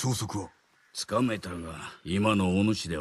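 An older man answers in a low, calm voice.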